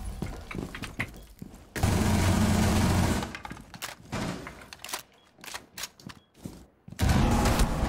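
Rapid rifle shots ring out in bursts.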